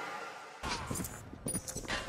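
A rifle fires a sharp shot.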